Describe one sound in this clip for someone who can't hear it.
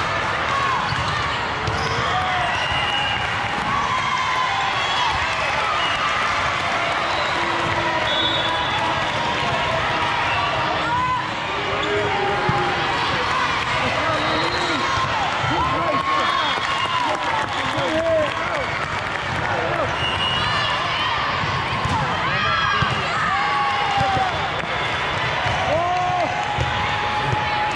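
Young women players call out and chatter across the hall.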